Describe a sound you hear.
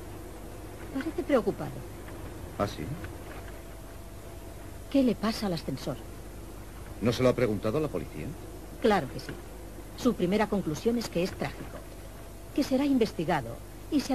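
A woman talks with feeling, close by.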